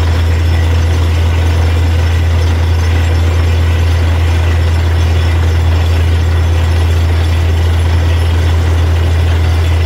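Muddy water splashes and gushes out of a borehole.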